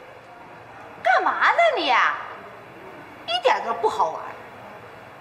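A young woman shouts loudly and shrilly nearby.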